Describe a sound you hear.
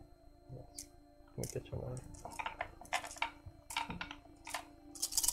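Dice rattle and click in a tray.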